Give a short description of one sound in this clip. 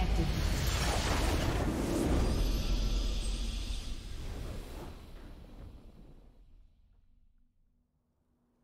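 A triumphant game victory fanfare swells and fades away.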